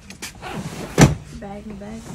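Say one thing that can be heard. A hard suitcase lid thumps shut.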